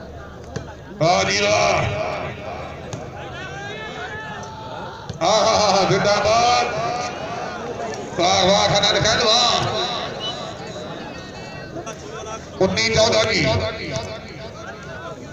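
A large outdoor crowd cheers loudly in sudden bursts.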